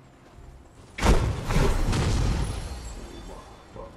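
A loud game blast whooshes and rumbles.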